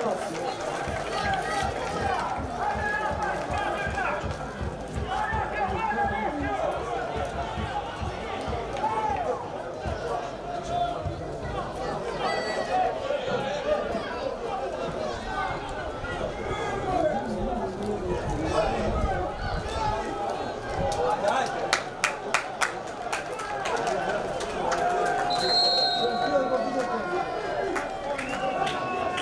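A crowd of spectators talks and shouts outdoors.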